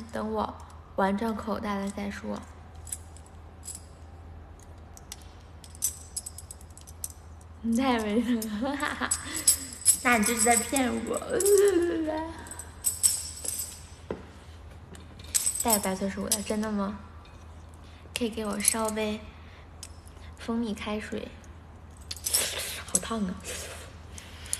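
A young woman speaks up close, in a lively way, with pauses.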